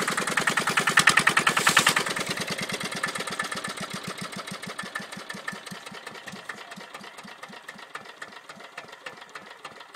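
A small stationary engine chugs with a fast, steady beat that slowly slows and quietens.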